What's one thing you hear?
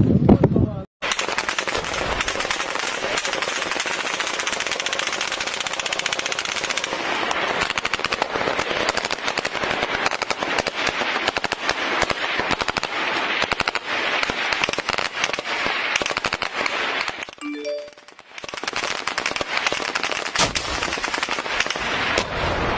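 Gunfire rattles in rapid bursts nearby.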